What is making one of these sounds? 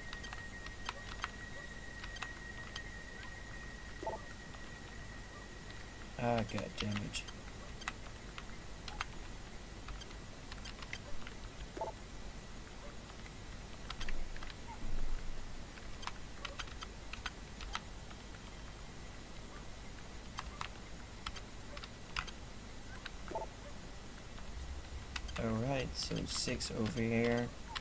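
Computer keys click in quick, irregular taps.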